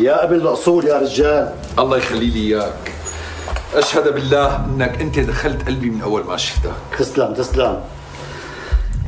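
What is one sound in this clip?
An elderly man speaks with animation nearby.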